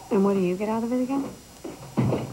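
A young woman speaks in a questioning tone, close by.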